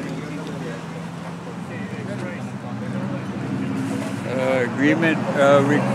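Several men talk nearby outdoors, one speaking loudly.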